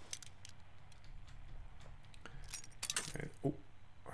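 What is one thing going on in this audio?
A lock pick scrapes and clicks inside a lock.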